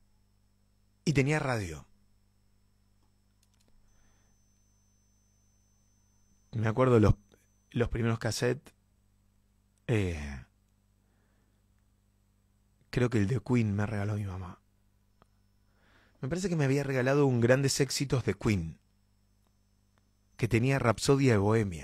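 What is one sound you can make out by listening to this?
A young man speaks close into a microphone in short, lively bursts with pauses between them.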